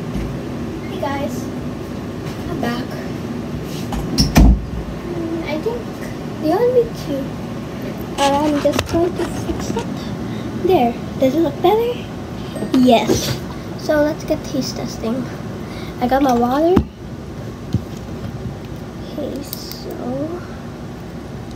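A girl talks with animation close to a microphone.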